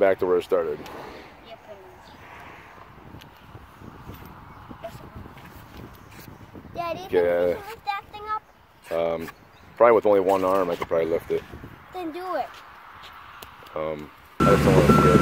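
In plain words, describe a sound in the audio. Children talk and call out excitedly nearby.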